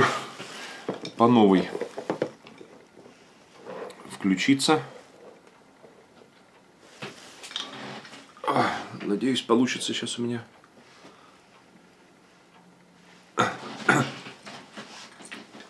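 A middle-aged man speaks close to the microphone in short, deliberate bursts with pauses.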